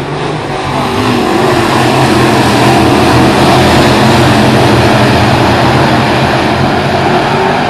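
Loud race car engines roar and rumble as they speed past.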